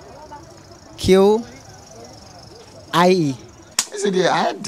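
A young man answers into a microphone.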